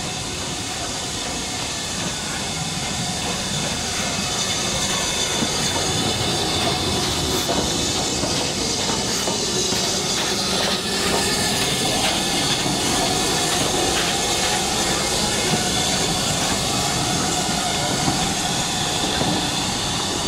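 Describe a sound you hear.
A steam locomotive rumbles and hisses as it rolls slowly past close by.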